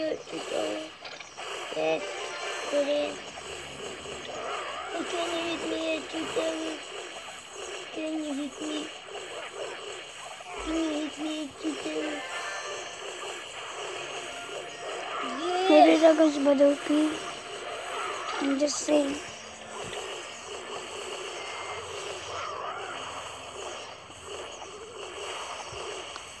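Small blasts and zaps from a cartoon battle crackle on and off.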